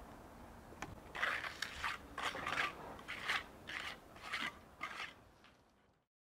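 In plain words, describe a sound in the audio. Stone blocks knock sharply against each other.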